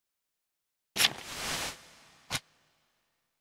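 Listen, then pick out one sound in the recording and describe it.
A paper folder flaps open with a rustle.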